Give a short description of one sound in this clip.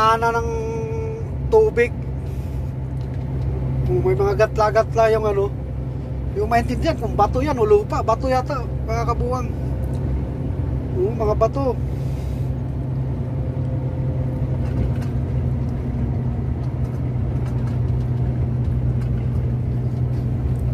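A large vehicle's engine hums steadily while driving.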